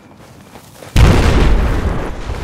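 A loud explosion booms nearby.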